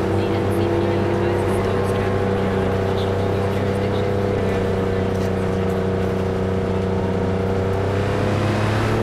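Tyres roll on wet pavement.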